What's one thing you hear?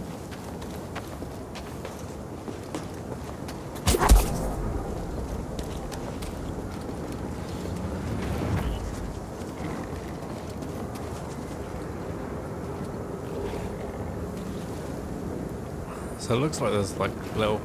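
Footsteps run over stone and grass.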